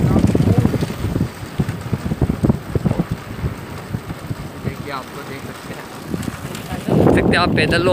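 A motorcycle engine hums along a road ahead.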